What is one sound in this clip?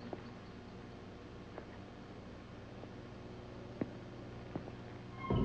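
Knocks and scuffs sound as someone climbs over a stone railing.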